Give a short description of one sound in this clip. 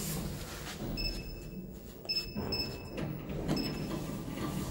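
An elevator button beeps as it is pressed.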